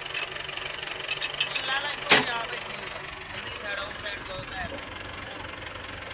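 A truck engine rumbles.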